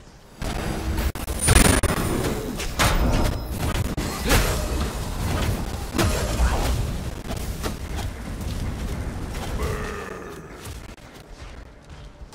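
Weapons clash and strike in quick blows.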